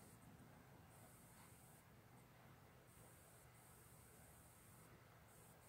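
A ceiling fan whirs steadily.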